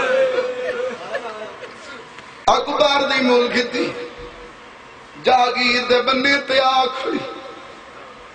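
A young man chants loudly and with passion into a microphone, heard through loudspeakers in an echoing space.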